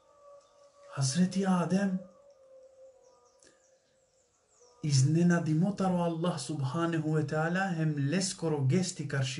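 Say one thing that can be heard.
A man speaks calmly and with animation close to a microphone.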